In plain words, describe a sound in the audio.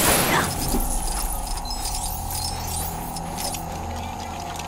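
Small plastic pieces clatter and scatter rapidly.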